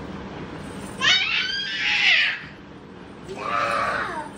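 A small child squeals and laughs.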